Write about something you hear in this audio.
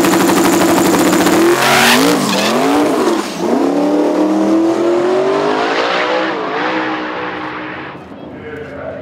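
A V8 drag racing car launches at full throttle and roars off, fading into the distance.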